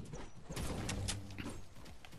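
A pickaxe swings and strikes in a video game.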